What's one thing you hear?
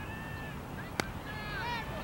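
A cricket bat cracks sharply against a ball.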